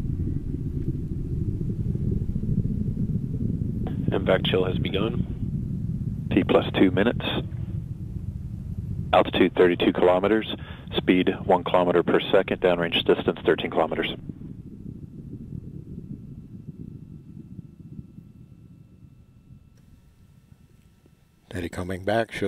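A distant rocket roars with a deep low rumble that slowly fades away.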